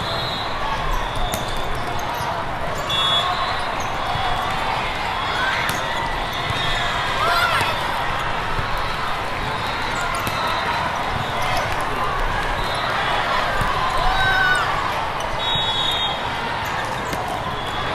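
A volleyball thuds off players' hands and arms.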